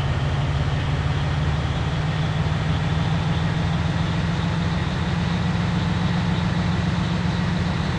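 A bus engine drones steadily at speed.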